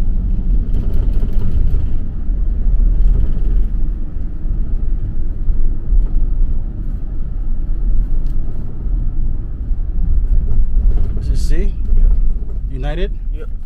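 A car engine rumbles steadily from inside a moving vehicle.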